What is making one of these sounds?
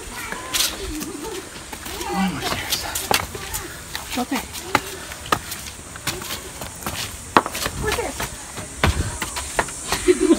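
Footsteps scuff and tap on stone steps and ground.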